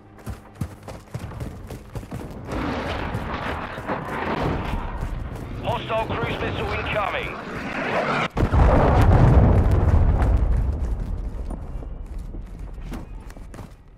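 Footsteps thud quickly on hard ground.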